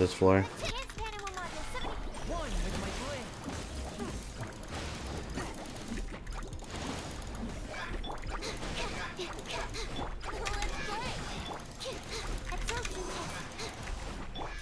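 Magical battle effects whoosh and crackle.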